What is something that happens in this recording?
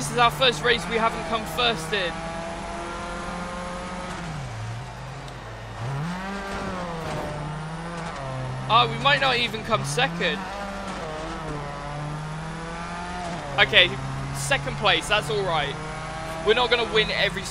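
A racing car engine drones and revs up and down.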